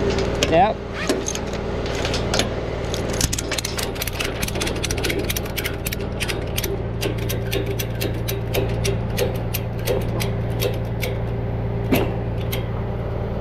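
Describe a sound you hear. A ratchet strap clicks rapidly as it is cranked tight.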